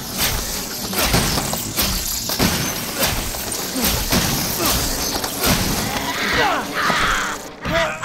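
Shotgun blasts boom loudly.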